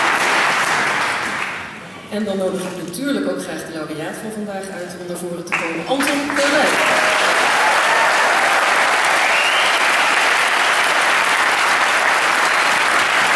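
A large audience applauds in a big hall.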